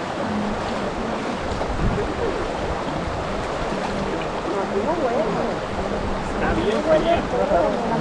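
Water flows and babbles over rocks.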